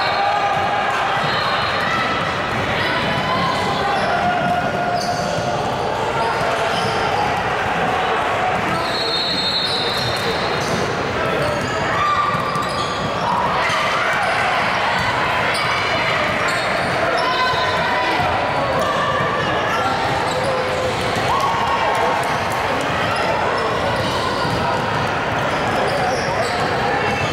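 Sneakers squeak on a wooden floor in a large echoing gym.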